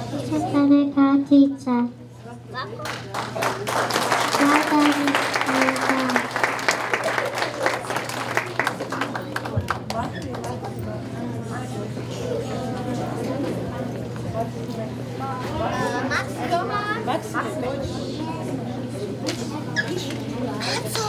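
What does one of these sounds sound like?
A crowd of children chatters and murmurs in the background.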